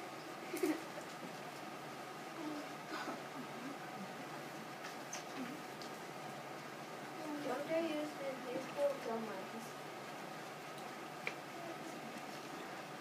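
A young boy reads out aloud in a room, heard from a distance.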